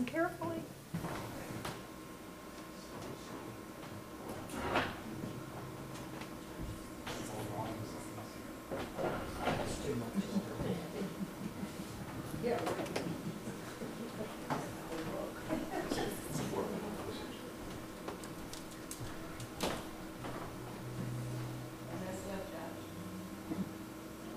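A man speaks calmly into a microphone, heard through loudspeakers in an echoing hall.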